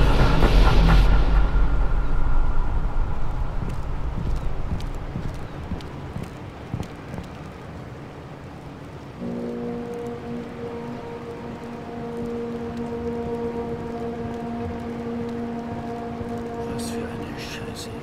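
Footsteps pad softly across stone.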